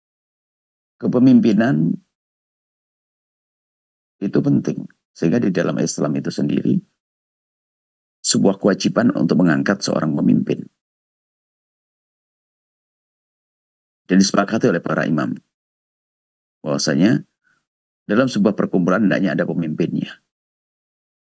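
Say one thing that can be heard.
An elderly man speaks calmly and close to a microphone, with pauses between phrases.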